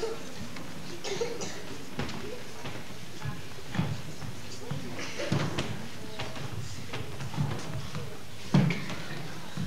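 Children murmur and talk quietly nearby.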